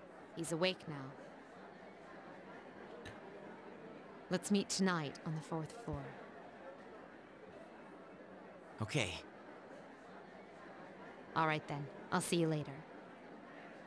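A young woman speaks calmly and evenly.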